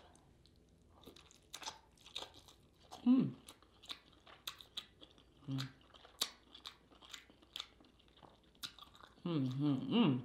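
A woman chews and smacks her lips close to a microphone.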